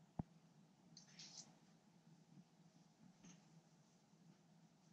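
Fabric rustles as a jacket is pulled on.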